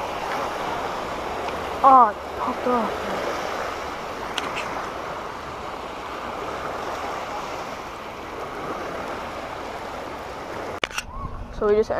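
Waves splash and lap against a shore.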